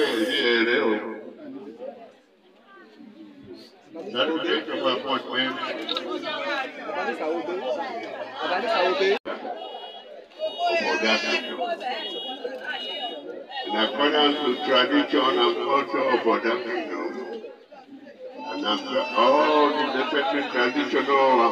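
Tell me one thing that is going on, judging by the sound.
A man speaks through a microphone and loudspeaker with animation.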